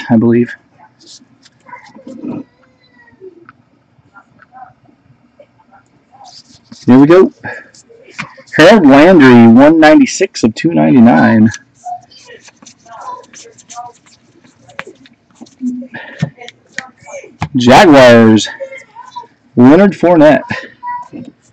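Trading cards rustle and slide as they are flipped through by hand.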